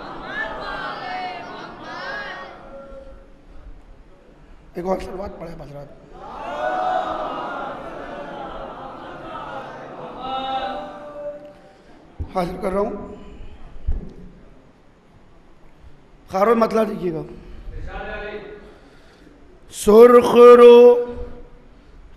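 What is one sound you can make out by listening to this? A man recites with animation into a microphone, heard through loudspeakers.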